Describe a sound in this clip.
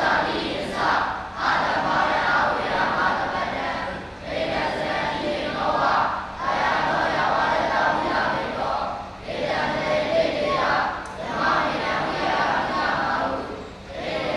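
A crowd of young boys chants together in unison.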